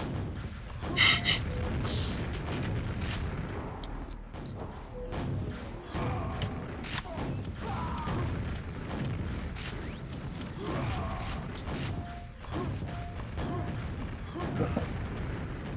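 Gunshots and explosions from a video game go off in bursts.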